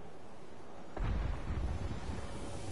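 A character lands with a thud on a rooftop.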